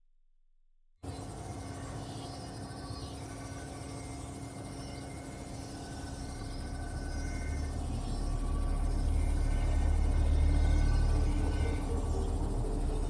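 An elevator hums low and steady as it rises, growing louder toward the end.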